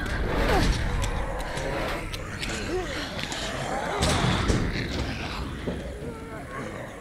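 Creatures groan and moan close by.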